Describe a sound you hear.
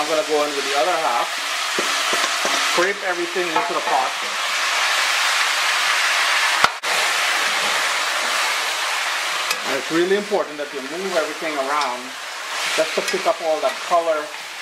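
A spoon scrapes and stirs food in a pot.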